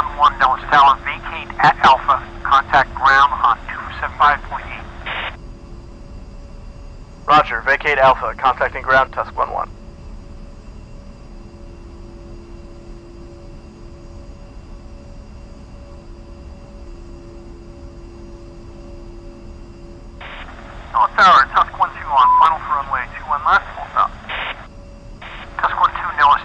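A jet engine hums steadily at idle.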